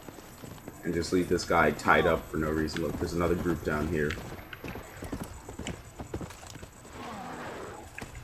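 A horse gallops with hooves thudding on dirt.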